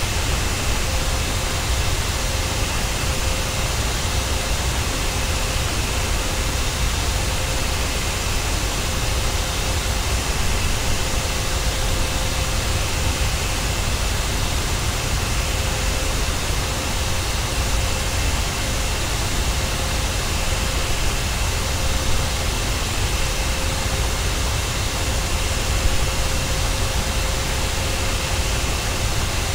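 The jet engines of a twin-engine airliner roar as it cruises.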